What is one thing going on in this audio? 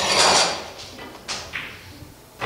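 A cue strikes a pool ball with a sharp tap.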